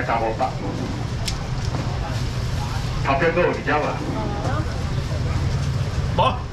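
Several adults talk at once nearby, over a low rumble of crowd noise.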